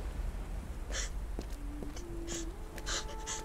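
Footsteps run quickly on a wet pavement.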